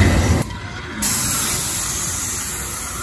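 A fire hisses and roars.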